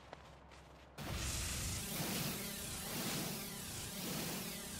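A laser beam hisses and crackles steadily as it mines rock.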